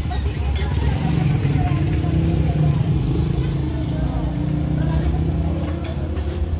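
A motor engine idles close by with a steady low rumble.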